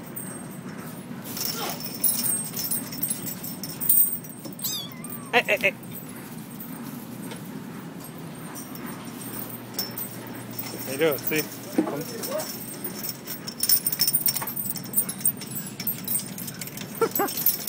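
Dry hay rustles as kittens tumble in it.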